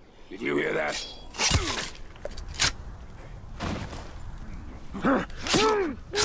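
Sword blows strike and clash in a fight.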